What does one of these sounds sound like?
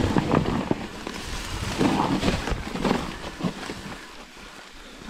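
Wind buffets the microphone in loud gusts.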